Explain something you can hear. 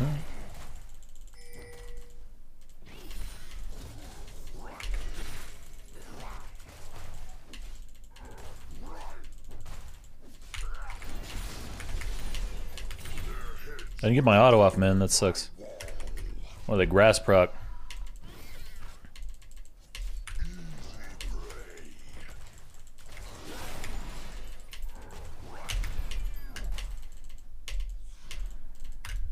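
Quick hits and zaps sound as game characters battle.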